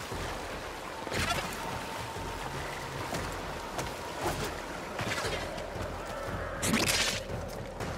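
A blade swishes through the air and strikes.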